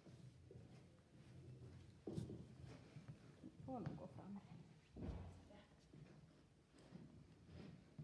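Footsteps tap on a hard floor in an echoing hall.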